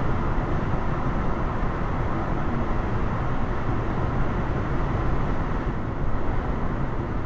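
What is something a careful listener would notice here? Tyres roar steadily on the road from inside a moving car.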